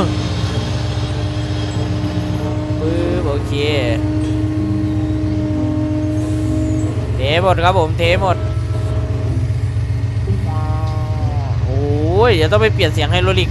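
An excavator engine drones steadily.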